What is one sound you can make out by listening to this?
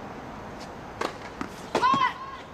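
A tennis ball is struck with a racket.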